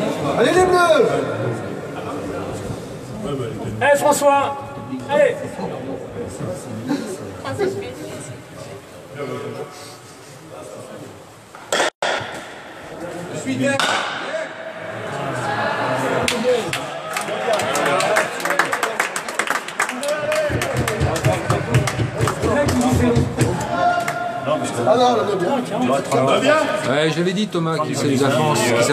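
Men talk in an echoing hall.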